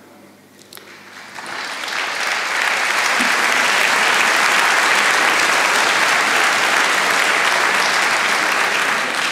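A large crowd applauds in a big echoing hall.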